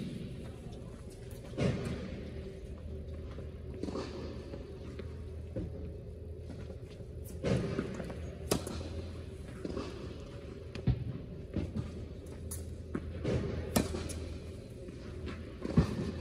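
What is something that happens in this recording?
Sneakers squeak and shuffle on a hard court.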